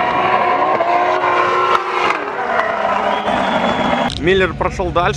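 Tyres screech as cars slide.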